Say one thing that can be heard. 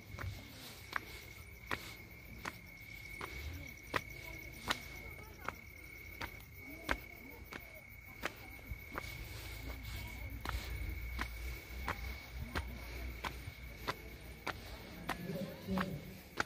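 Footsteps climb stone steps at a steady pace outdoors.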